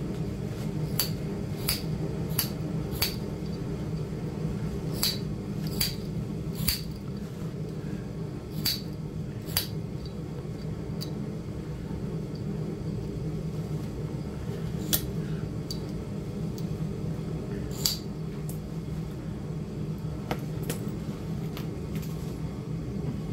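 A metal pick scrapes and ticks against hard crusty material.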